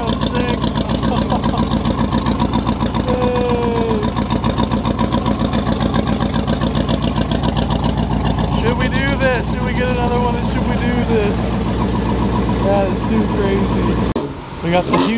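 A car engine idles loudly with a rough, lumpy rhythm.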